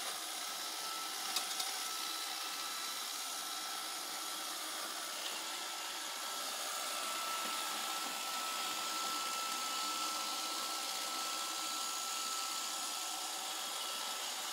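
A robot vacuum cleaner hums and whirs steadily as it moves across a floor.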